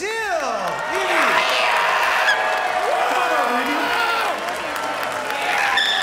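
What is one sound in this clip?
An audience applauds and cheers loudly.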